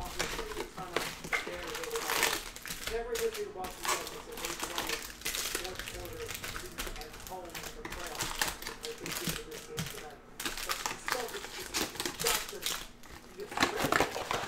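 Cardboard flaps scrape and thud as a box is opened.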